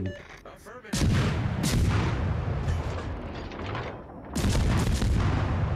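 Heavy naval guns fire with deep, rumbling booms.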